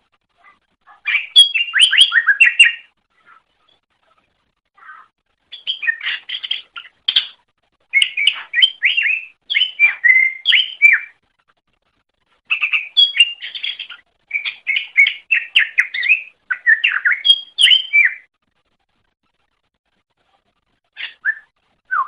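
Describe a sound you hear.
A small bird sings in quick bursts of chirping, whistling notes.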